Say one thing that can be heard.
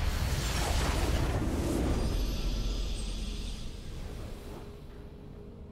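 A loud victory fanfare blares from a game and fades away.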